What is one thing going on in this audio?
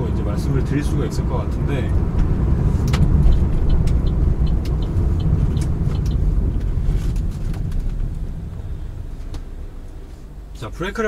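A car's tyres rumble on the road as the car slows to a stop.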